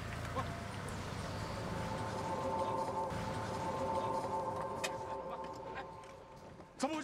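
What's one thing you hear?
A car rolls slowly over gravel with its engine running.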